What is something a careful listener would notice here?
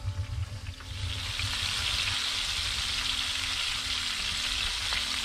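Meat sizzles loudly in a hot frying pan.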